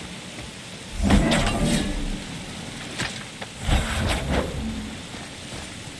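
Ice crystals crack and shatter with a loud burst.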